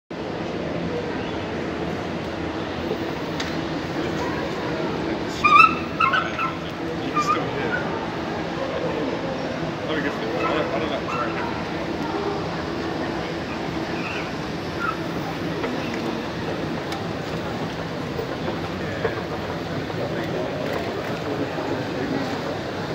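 A crowd of shoppers murmurs and chatters in a large indoor hall.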